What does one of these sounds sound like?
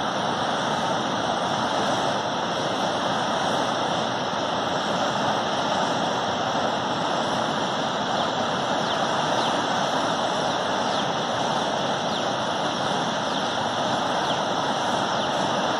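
A tall jet of water gushes and roars steadily, spraying and splashing down.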